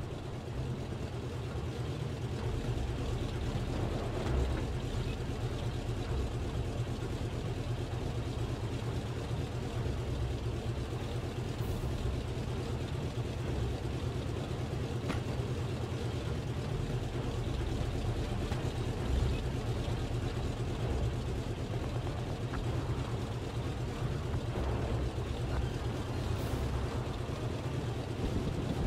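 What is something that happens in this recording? A tank engine idles with a steady low rumble.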